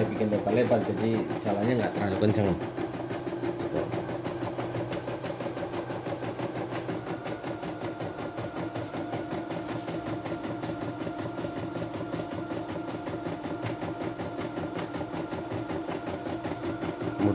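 An embroidery machine stitches with a fast, steady rattling hum.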